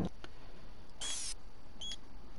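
A short electronic beep sounds.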